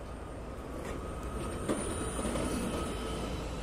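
A bus pulls past close by with its engine rumbling.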